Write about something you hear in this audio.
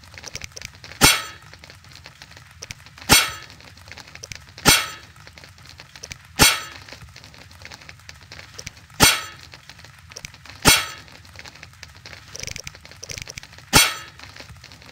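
Sharp interface clicks sound at intervals.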